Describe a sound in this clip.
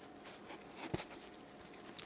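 Metal keys jingle and clink close by.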